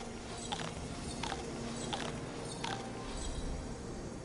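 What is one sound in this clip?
Magic sparkles chime and crackle in quick bursts.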